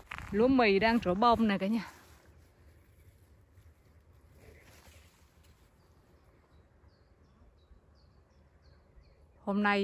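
Wind blows softly through tall grass outdoors.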